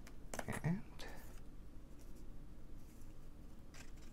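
Coins click softly against cardboard.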